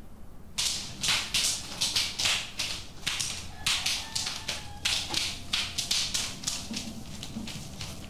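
Footsteps clatter quickly down wooden stairs.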